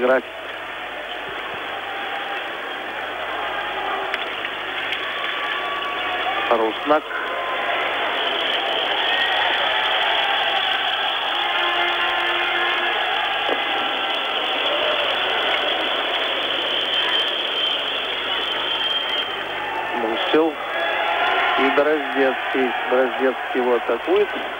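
A large crowd murmurs and cheers in an echoing indoor arena.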